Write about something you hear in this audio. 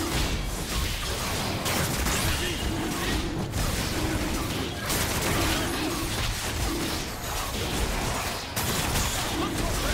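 Magic blasts and weapon hits crackle in a fast fight.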